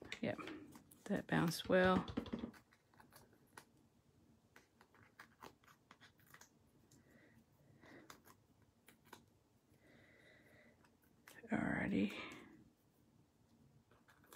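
Stiff paper rustles and crinkles close by.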